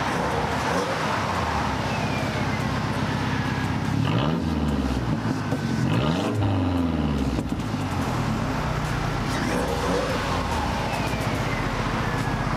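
A car engine idles loudly with a deep, uneven rumble close by.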